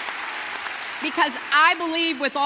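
An elderly woman speaks with animation into a microphone, heard through loudspeakers in a large open space.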